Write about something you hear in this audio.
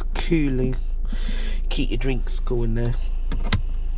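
An armrest lid clicks shut.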